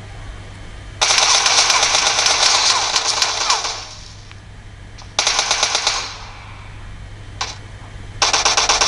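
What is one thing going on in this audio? Rapid bursts of gunfire from a mobile shooter game play through a phone's small speaker.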